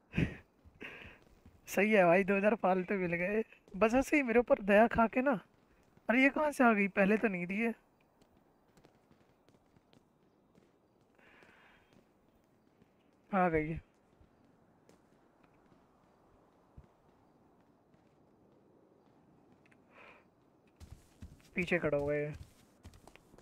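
A young man talks with animation into a close microphone, in short bursts.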